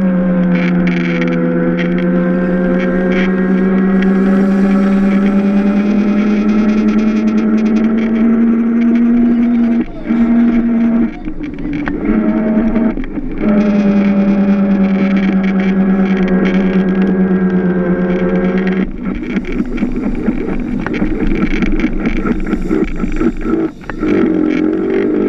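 A small kart engine drones loudly up close, easing off briefly in the corners.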